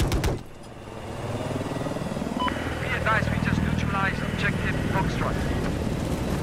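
A helicopter's rotors thump with a steady low drone.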